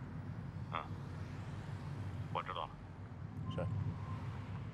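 A man speaks briefly and calmly into a phone.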